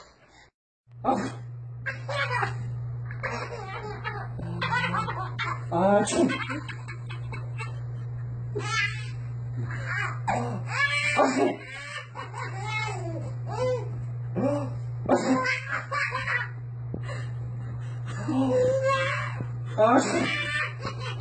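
A baby giggles and squeals.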